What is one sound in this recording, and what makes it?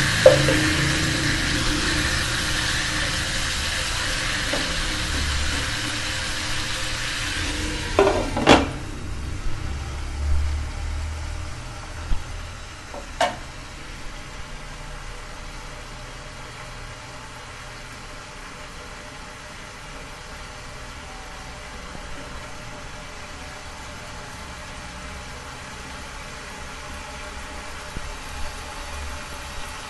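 Chicken sizzles loudly in hot oil.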